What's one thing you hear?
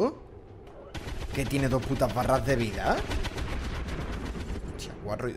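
A heavy gun fires in loud bursts.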